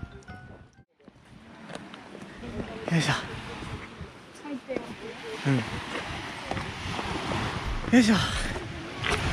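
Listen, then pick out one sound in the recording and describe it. Small waves wash gently onto a pebble beach.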